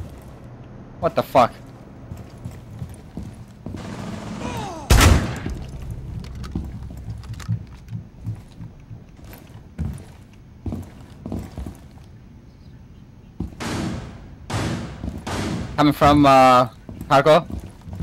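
Footsteps thud on a floor.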